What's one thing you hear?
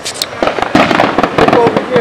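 Fireworks pop and crackle in the distance.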